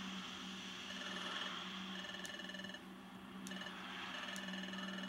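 Short electronic blips tick rapidly, in bursts, as text prints out in a game.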